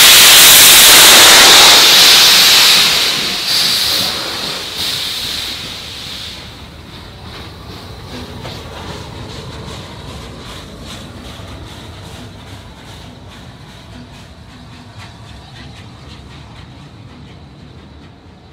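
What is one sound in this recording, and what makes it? A steam train rolls past with wheels clicking over rail joints.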